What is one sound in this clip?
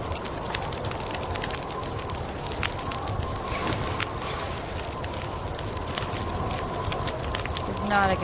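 A wood fire crackles in a stove.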